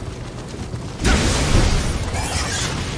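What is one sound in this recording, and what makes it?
A blade strikes a hard surface with a crunching burst.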